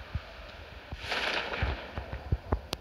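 A parachute opens with a sudden loud whoosh.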